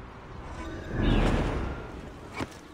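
A heavy thud of someone landing hard on stone.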